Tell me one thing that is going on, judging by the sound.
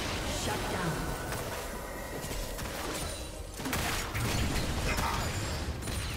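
Video game spell effects burst and whoosh during a fight.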